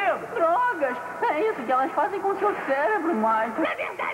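A boy screams in fright.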